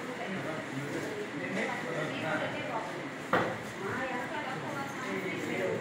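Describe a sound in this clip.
A crowd of men and women talk over one another nearby.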